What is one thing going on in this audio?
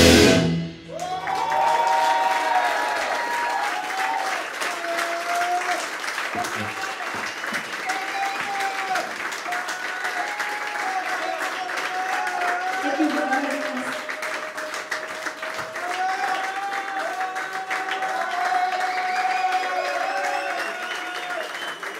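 A live rock band plays loudly in a room.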